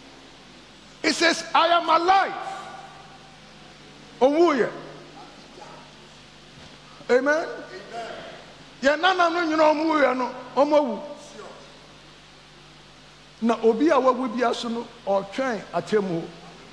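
An older man preaches with animation into a headset microphone, in bursts with pauses between.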